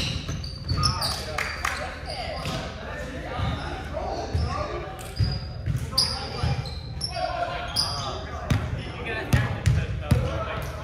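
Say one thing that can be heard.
A volleyball is struck and bounces with sharp smacks in a large echoing hall.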